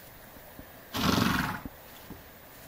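A horse snorts loudly.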